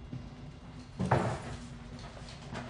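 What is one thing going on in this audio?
A wooden door creaks and bumps as it is pushed open.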